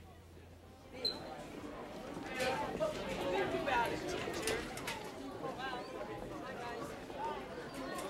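Teenage girls chatter with one another close by.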